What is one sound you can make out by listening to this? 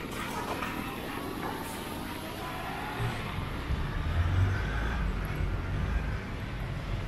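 A motorbike engine hums as the bike rides away down the street.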